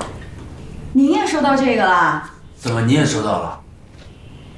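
A young woman speaks nearby with a bright, questioning tone.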